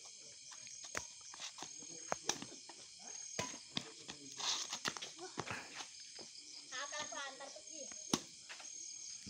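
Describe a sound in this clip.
A badminton racket strikes a shuttlecock with sharp taps.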